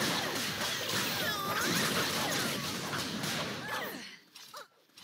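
Magic spells crackle and whoosh loudly.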